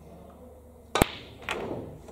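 Snooker balls knock together with a loud crack.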